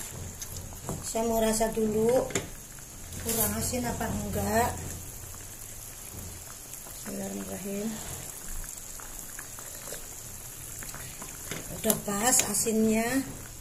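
A ladle scrapes and stirs in a pan.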